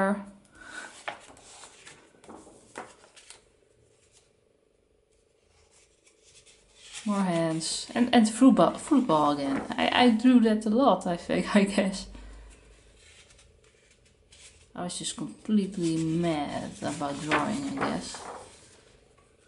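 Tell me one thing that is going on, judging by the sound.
Paper pages rustle as a sketchbook is turned.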